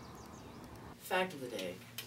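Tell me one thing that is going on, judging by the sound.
A young man speaks calmly, close to a microphone.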